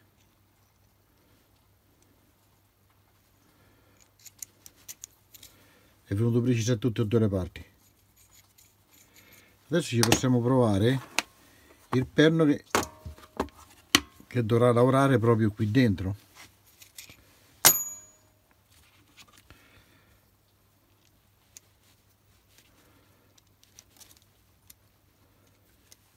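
Small steel parts click and scrape together in hands.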